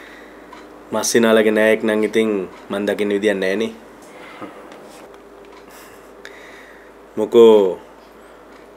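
A second man answers in a relaxed voice, close by.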